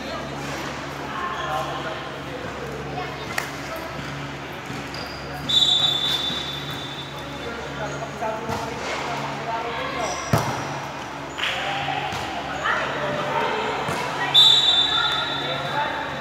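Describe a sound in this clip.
Young women call out to each other on the court.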